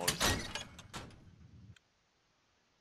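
A heavy metal door opens.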